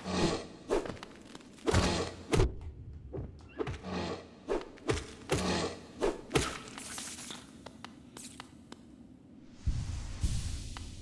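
A sword slashes with sharp, swishing strikes.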